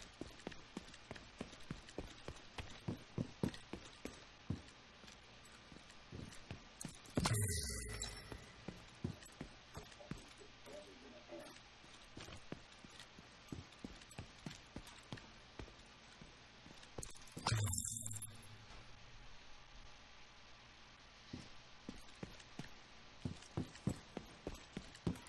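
Footsteps walk steadily over a hard floor.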